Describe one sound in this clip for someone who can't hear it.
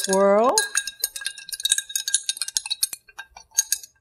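Glass clinks lightly.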